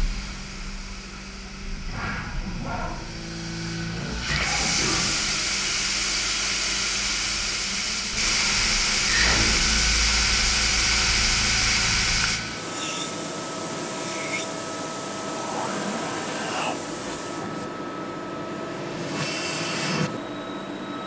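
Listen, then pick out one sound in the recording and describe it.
A machine whirs and hums as it moves a part.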